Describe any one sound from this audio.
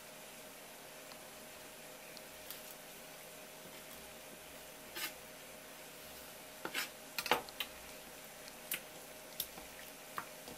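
A knife scrapes and taps on a wooden cutting board.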